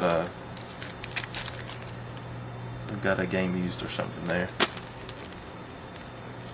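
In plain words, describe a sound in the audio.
A foil wrapper crinkles as a pack of trading cards is opened.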